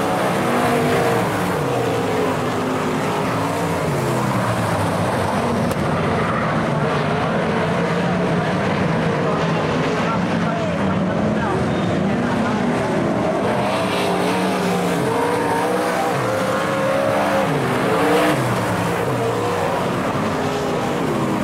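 Race car engines roar loudly, revving up and down as they pass.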